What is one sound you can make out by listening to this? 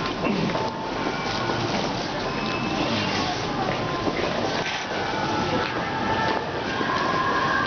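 A crowd of men and women chatter nearby in a busy, echoing space.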